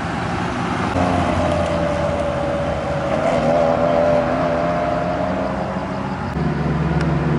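An older car's engine revs as it drives away.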